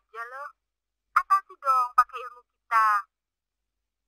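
A young woman speaks into a phone.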